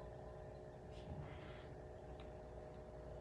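A small glass bottle clicks as it is handled.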